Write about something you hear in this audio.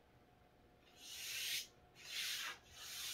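A wooden strip scrapes across a metal tabletop in short bursts.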